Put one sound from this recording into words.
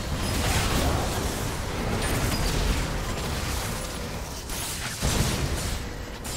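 Game spell effects whoosh, crackle and clash during a hectic fight.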